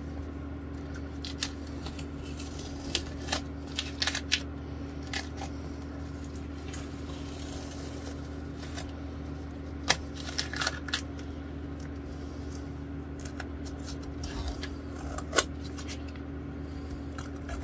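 Masking tape crackles and rips as it is peeled off.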